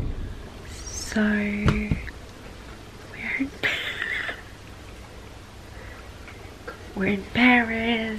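A young woman talks animatedly and close by.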